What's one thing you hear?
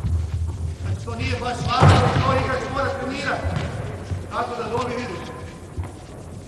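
A man calls out instructions in a large echoing hall.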